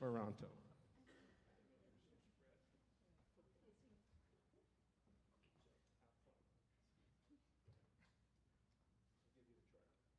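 A man speaks calmly at a distance in an echoing hall.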